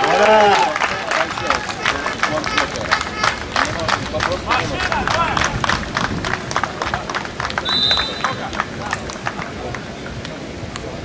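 A crowd claps in a steady rhythm.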